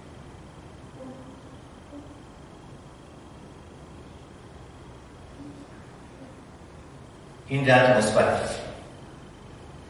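A middle-aged man speaks briefly and quietly, then says a few loud words close by.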